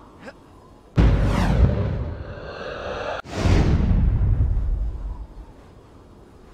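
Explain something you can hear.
A fiery blast roars loudly and dies away.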